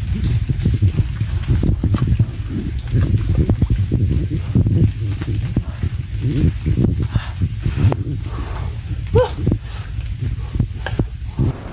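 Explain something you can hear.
A man speaks breathlessly close by.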